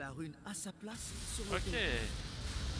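A shimmering magical burst swells loudly.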